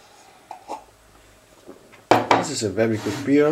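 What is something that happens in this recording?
A glass is set down on a wooden table.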